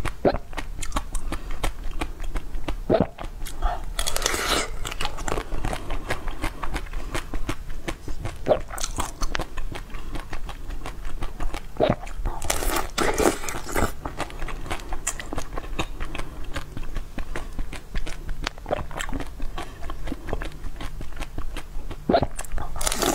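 A young woman crunches and chews something brittle close to a microphone.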